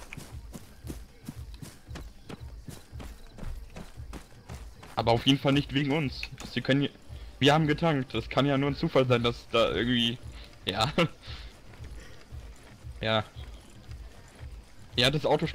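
Footsteps crunch steadily through grass.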